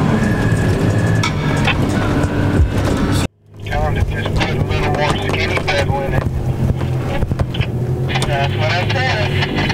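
Tyres crunch over rough snowy ground.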